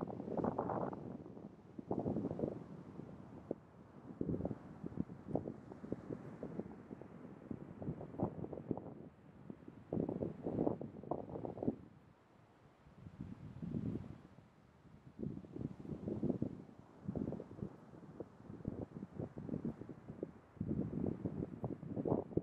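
An elephant seal breathes heavily and snorts in low rumbling bursts.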